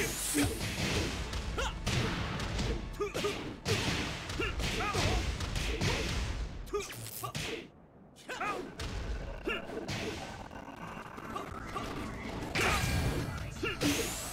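Punches and kicks land with heavy thuds and bursts.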